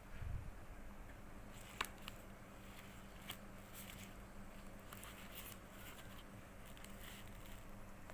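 Stiff card pages flip and rustle softly.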